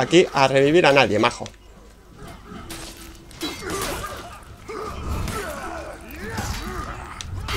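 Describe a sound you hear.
Metal weapons clash and clang in a fight.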